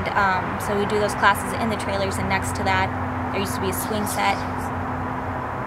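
A young woman speaks close by with feeling.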